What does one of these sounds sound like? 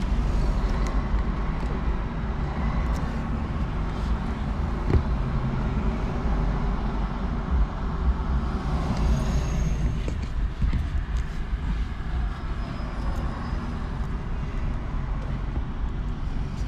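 Traffic passes by on the road outside.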